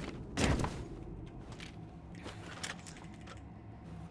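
A gun clicks and rattles as it is readied.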